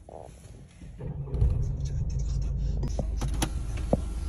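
A car engine starts and idles with a low rumble.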